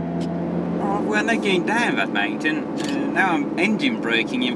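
Raindrops patter on a car windshield.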